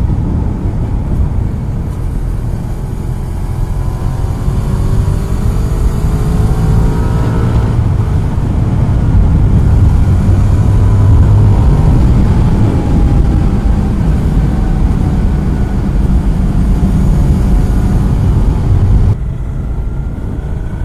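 Wind roars loudly against a helmet on a moving motorbike.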